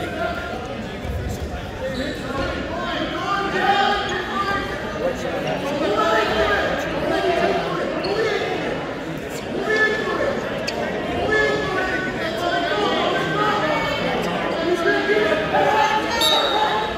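A crowd of spectators shouts and cheers throughout, echoing in a large hall.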